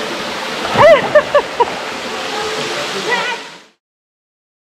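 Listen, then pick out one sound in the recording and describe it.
Water splashes loudly as people jump in.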